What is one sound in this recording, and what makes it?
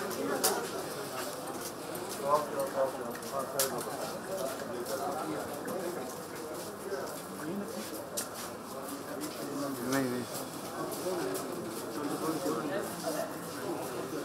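Several men talk over one another nearby, in a crowd.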